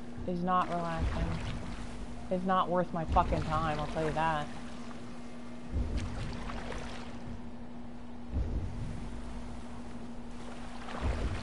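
Oars dip and splash in the water with each stroke.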